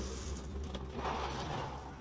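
Powder pours softly from a paper carton into a plastic cup.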